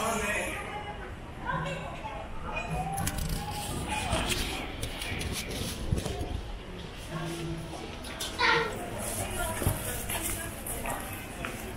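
Footsteps tap on a paved walkway.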